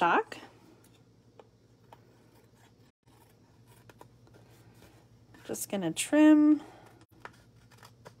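Scissors snip through thin card.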